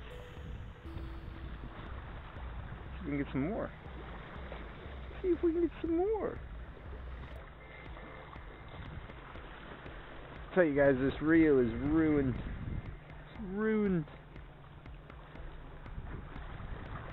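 Small waves lap and splash against rocks.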